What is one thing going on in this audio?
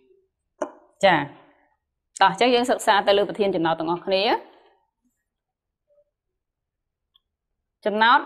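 A young woman speaks clearly and calmly, up close.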